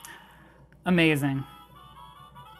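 A handheld game console plays a short rising electronic jingle.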